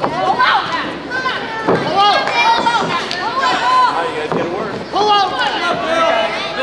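A crowd of men and women shouts and cheers loudly in a large hall.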